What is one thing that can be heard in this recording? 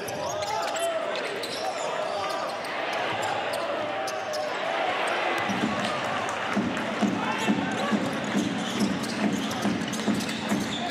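A small crowd murmurs in a large echoing arena.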